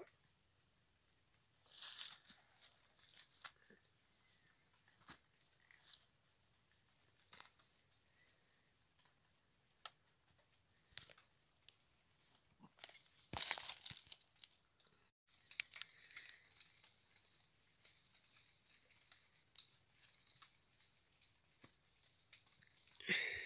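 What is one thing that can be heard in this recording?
Dry leaves rustle as a hand moves a dead animal on the ground.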